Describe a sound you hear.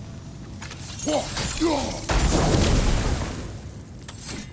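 A magical burst whooshes and shimmers loudly.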